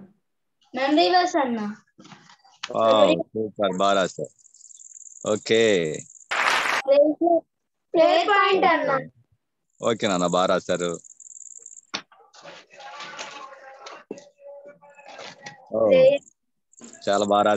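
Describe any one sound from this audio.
A young girl reads aloud over an online call.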